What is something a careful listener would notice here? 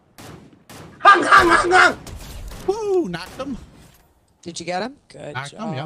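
A young man shouts excitedly into a microphone.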